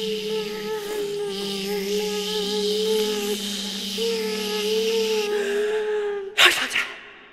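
A young woman sings close to a microphone, holding long, steady notes.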